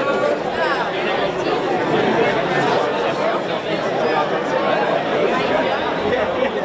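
A large crowd of men and women chat loudly all at once in an echoing hall.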